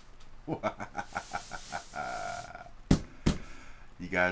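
A hand pats a cardboard box with dull thumps.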